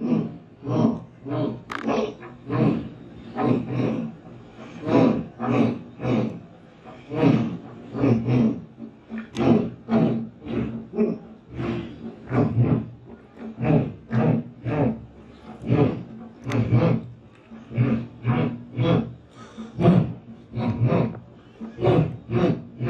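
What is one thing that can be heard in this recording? A man chants in rhythmic bursts through a microphone and loudspeakers.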